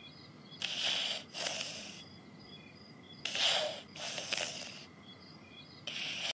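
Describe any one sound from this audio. A cartoon cat snores softly in slow, breathy bursts.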